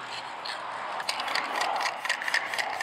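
A spray can hisses as paint sprays onto a wall.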